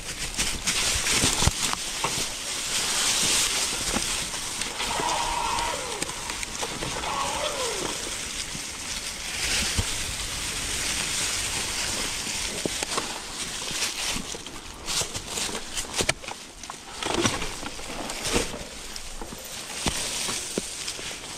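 A bicycle frame rattles and clunks over bumps.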